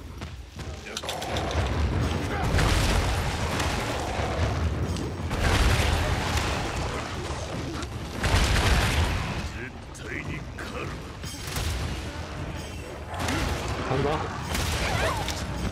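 Heavy blows thud and clang in a fight.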